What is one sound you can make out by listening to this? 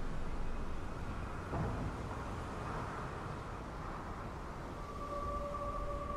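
Waves lap and wash steadily around a sinking ship.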